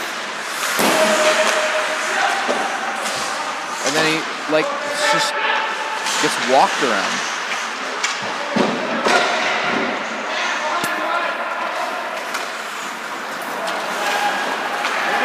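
Ice skates scrape and carve across the ice in a large echoing rink.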